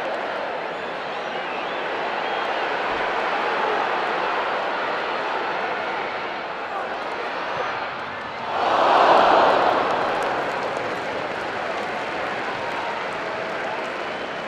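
A large football crowd murmurs and chants in a stadium.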